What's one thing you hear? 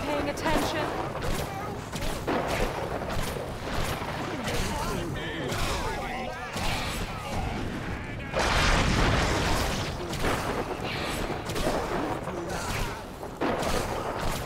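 Weapons fire in quick bursts of shots and blasts.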